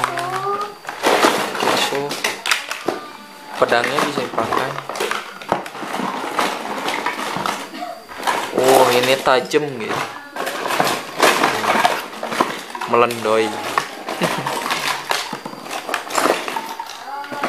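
Cardboard rustles and scrapes.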